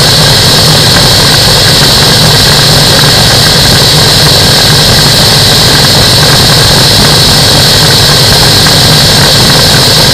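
Wind rushes hard and steadily past.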